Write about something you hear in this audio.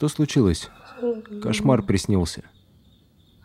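A woman answers quietly, close by.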